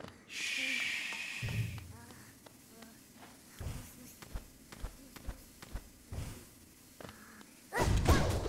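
Light, quick footsteps patter on a hard floor.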